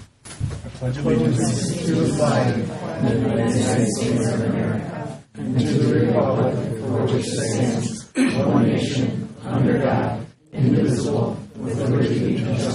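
A crowd of men and women recite together in unison in a large room.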